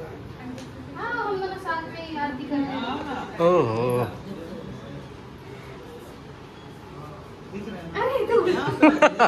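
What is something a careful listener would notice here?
Young women talk and laugh nearby.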